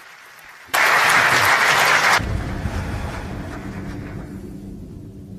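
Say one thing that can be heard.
A large audience applauds loudly in a big hall, then the applause fades.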